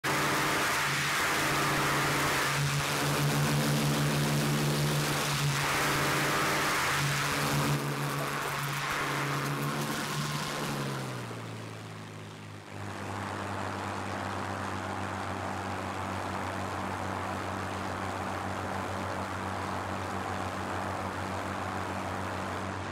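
A propeller plane's engine roars loudly, its pitch dropping and then holding steady.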